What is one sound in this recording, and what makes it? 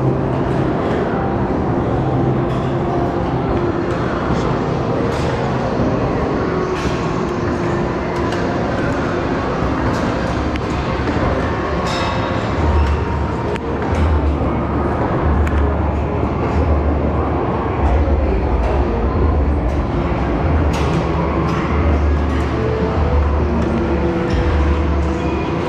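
A crowd chatters in a large, echoing indoor hall.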